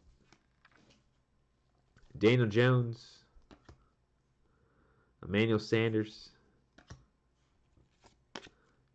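Trading cards slide and tap softly against each other.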